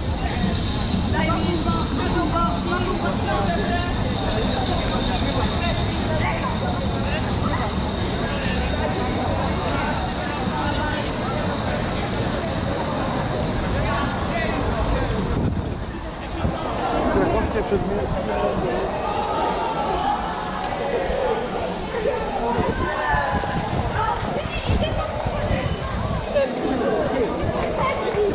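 A crowd of people chatters outdoors in an open square.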